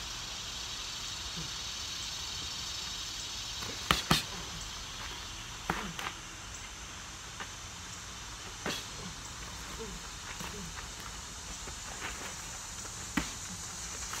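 Boxing gloves thump as punches land.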